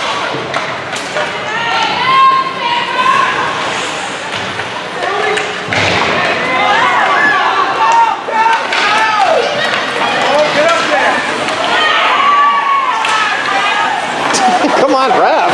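Hockey sticks slap a puck with sharp clacks.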